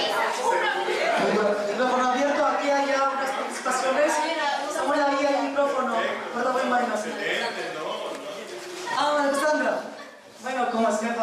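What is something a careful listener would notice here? A woman speaks with animation into a microphone through a loudspeaker.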